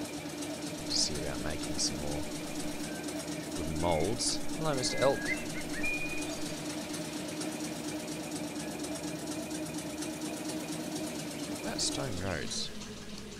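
A small engine chugs steadily.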